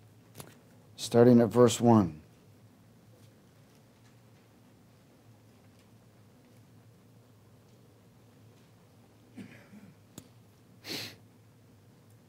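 A man speaks briefly and calmly through a microphone.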